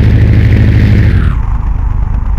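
Air rushes loudly past an aircraft, then cuts off.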